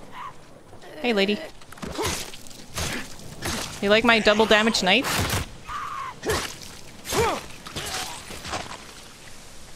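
A man grunts and shouts with effort.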